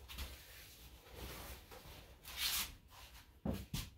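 A plastic cape rustles and flaps close by.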